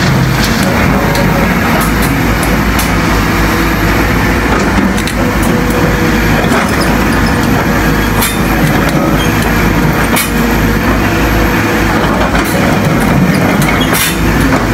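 A diesel excavator engine runs under load.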